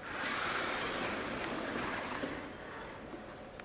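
A small robot's motors whir loudly as it drives, then fade.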